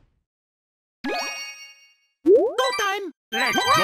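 Bright electronic chimes ring out.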